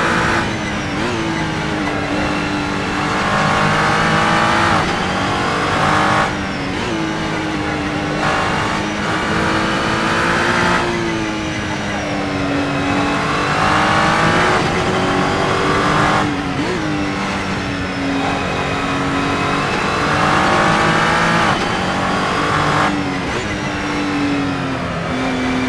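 A racing car engine roars loudly, revving up and dropping sharply with each gear change.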